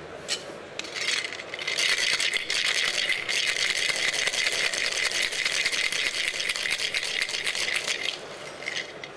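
A cocktail shaker rattles with ice, shaken hard and fast.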